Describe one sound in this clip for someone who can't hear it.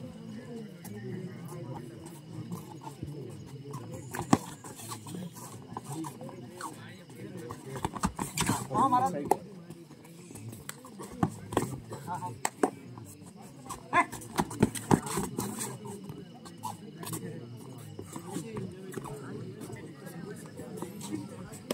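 A crowd of young men chatters outdoors.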